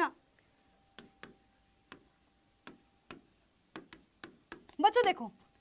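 A marker taps against a board.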